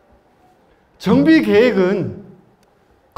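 A man speaks calmly into a microphone through a loudspeaker.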